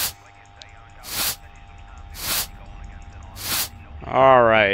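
A broom sweeps across a tiled floor in short swishes.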